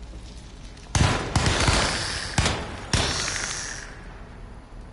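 Gunshots bang loudly in an echoing space.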